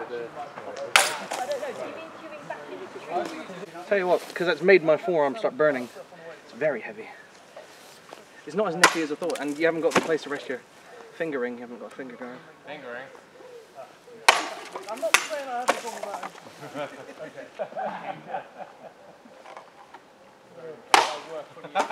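A sword blade strikes a plastic bottle with a sharp whack.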